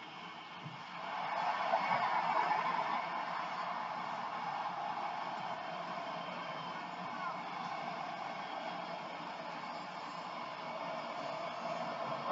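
A stadium crowd in a football video game murmurs and cheers through a TV speaker.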